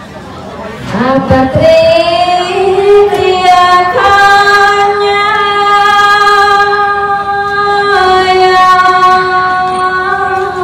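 A young woman sings into a microphone through a loudspeaker.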